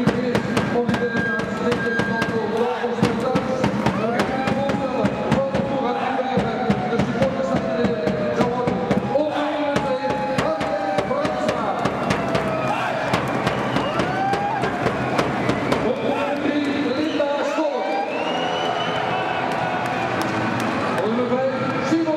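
Many people clap their hands in rhythm.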